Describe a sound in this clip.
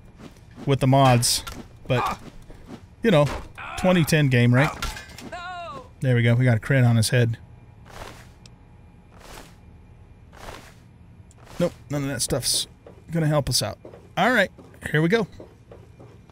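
An older man talks with animation close to a microphone.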